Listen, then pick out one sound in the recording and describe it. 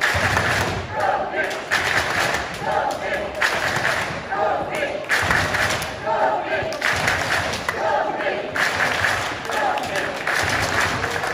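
A man speaks loudly in a large echoing hall.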